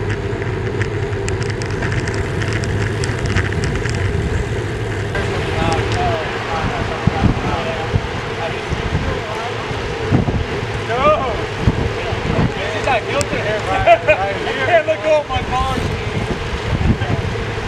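Wind rushes steadily over a bicycle rider.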